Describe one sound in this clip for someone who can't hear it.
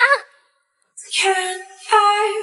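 A young woman speaks in a high, playful voice close by.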